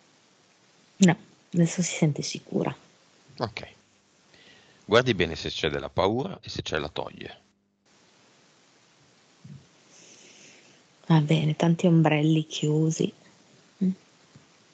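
A man speaks calmly into a headset microphone, heard close up over an online call.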